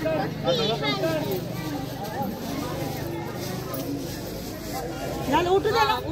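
A crowd of women talk and chatter close by.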